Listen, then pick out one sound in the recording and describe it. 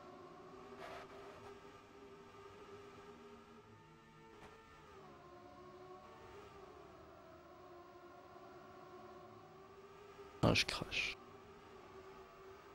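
Racing car engines drone steadily at high speed.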